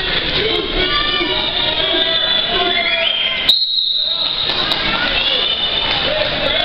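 A crowd of men and women chatters and calls out loudly in a large echoing hall.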